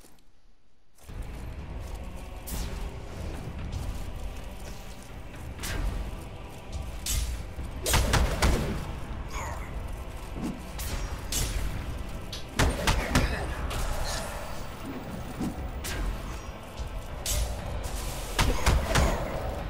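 Explosions burst and crackle in a video game.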